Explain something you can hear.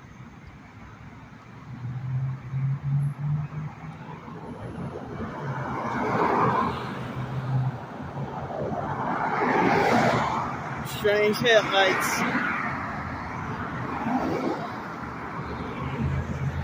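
Cars rush past on a road, swelling and fading one after another.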